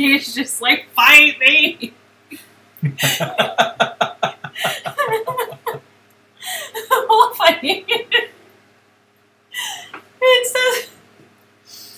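A woman talks and laughs, heard through a microphone.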